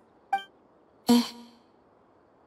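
A girl answers briefly and softly.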